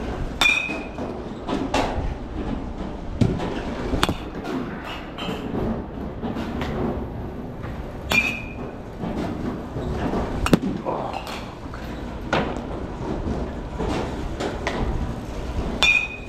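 Go-kart engines buzz and drone around a track.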